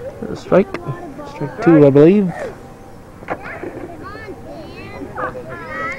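Children shout and call out nearby outdoors.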